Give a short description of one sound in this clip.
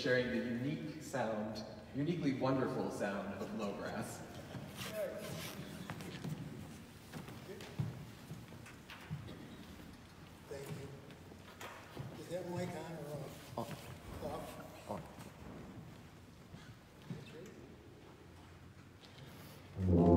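A man speaks to an audience through a microphone, in a large, echoing room.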